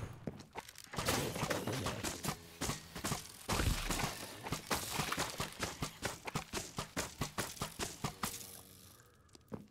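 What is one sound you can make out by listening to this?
A battle rages with rapid hits, zaps and crackling blasts.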